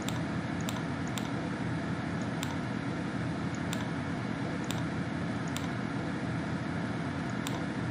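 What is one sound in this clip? A computer mouse clicks sharply several times.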